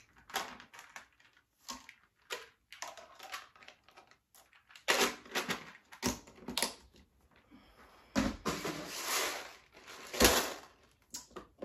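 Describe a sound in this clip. Plastic toys clatter as they are dropped into a bin.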